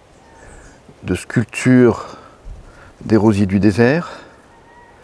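A middle-aged man speaks calmly and close to a clip-on microphone.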